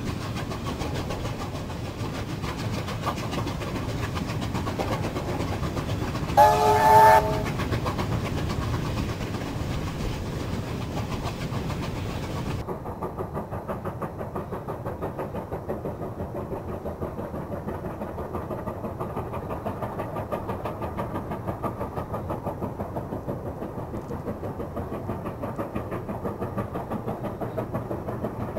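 A steam locomotive chuffs steadily as it hauls a long train.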